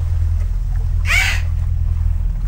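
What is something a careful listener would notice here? A dolphin squeaks with a high whistle.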